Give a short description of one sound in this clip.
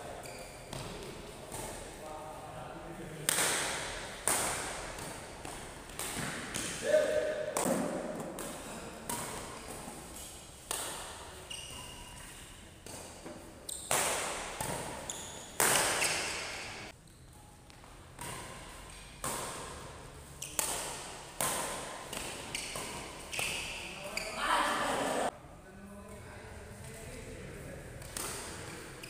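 Rackets strike a shuttlecock in a quick rally, echoing in a large hall.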